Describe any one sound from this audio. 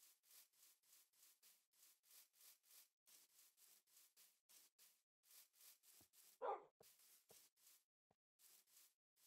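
Footsteps rustle quickly through grass at a steady pace.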